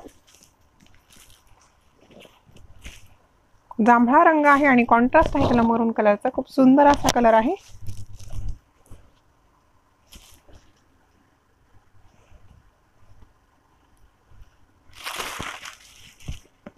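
Silk cloth rustles as it is unfolded and handled.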